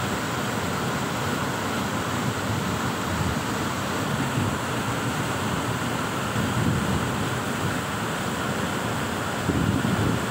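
A muddy flood torrent rushes and roars loudly over rocks.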